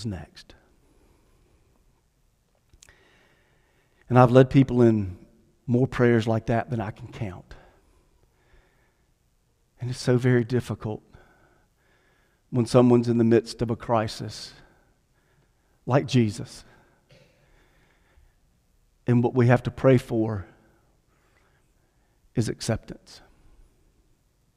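A middle-aged man speaks calmly into a microphone, with pauses between phrases.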